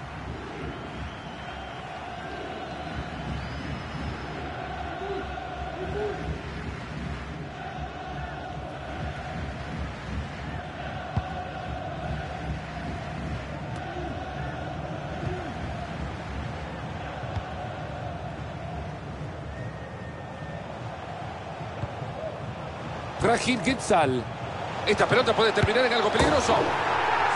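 A large stadium crowd chants and sings steadily.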